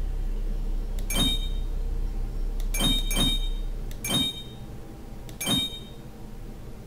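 Short bright chimes ring out with soft clicks as puzzle pieces turn.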